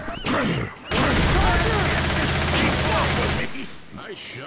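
A submachine gun fires a rapid burst.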